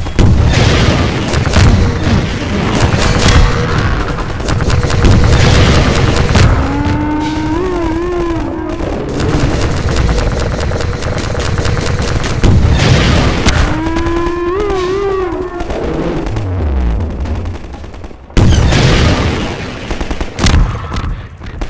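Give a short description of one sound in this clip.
A gun fires loud, sharp shots.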